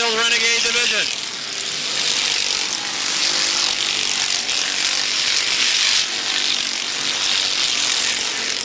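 Race car engines roar around a track.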